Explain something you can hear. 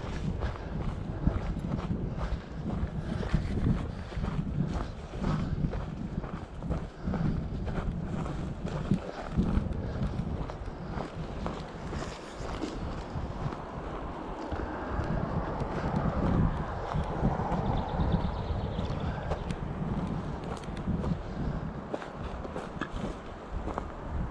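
Footsteps crunch on a dry forest path.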